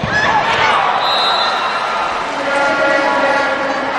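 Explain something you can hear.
Young women players shout in celebration.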